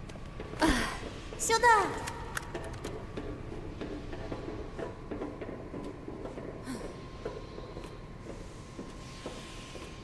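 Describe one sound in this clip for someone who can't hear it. Footsteps clang on a metal walkway.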